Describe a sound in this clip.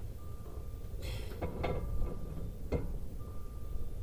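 A metal tool clinks and clanks as it is pulled off a brake caliper.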